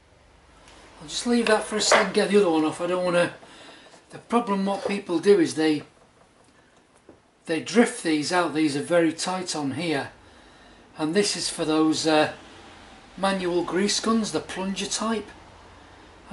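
An elderly man speaks calmly close by, in short bursts.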